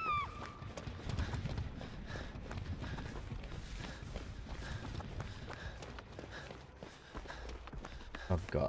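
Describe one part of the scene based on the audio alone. Footsteps patter steadily on the ground.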